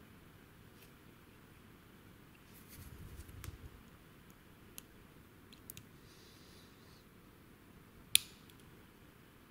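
A metal lock pick clicks and scrapes inside a padlock.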